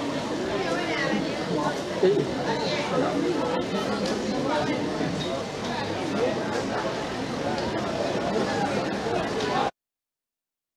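A crowd murmurs and chatters.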